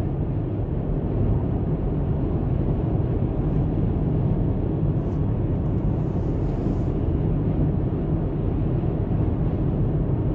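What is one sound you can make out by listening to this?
A car's engine hums steadily with a low road rumble from inside the car.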